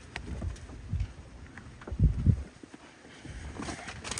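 A car door thuds shut.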